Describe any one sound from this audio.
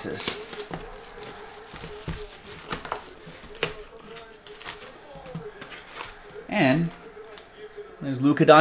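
Plastic wrappers crinkle and rustle as hands handle them.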